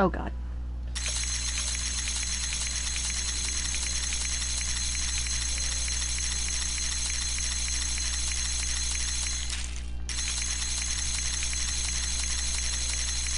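A cocktail shaker rattles with ice, shaken quickly and steadily.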